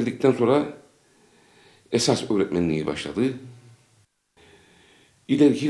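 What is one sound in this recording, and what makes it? An older man speaks calmly and close up, in short phrases with pauses.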